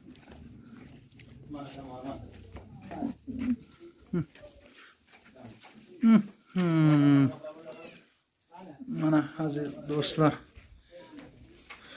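Sandals shuffle on dusty ground.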